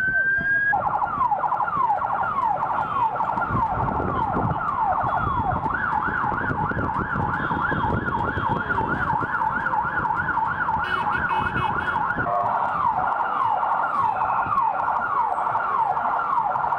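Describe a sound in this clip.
A siren wails close by, whooping up and down quickly.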